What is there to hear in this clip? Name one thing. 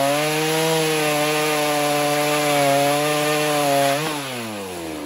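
A chainsaw cuts through wood with a loud, steady buzz.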